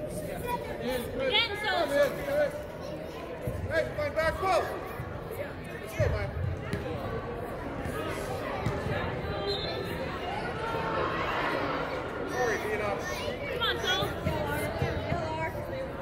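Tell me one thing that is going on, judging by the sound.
Young players shout to one another across the pitch.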